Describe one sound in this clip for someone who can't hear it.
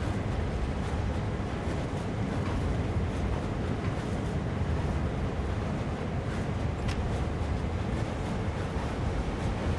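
A diesel locomotive engine rumbles steadily from inside the cab.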